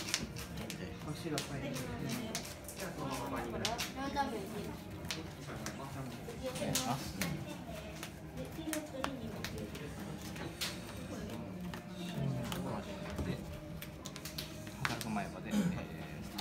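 Playing cards tap and slide on a soft mat.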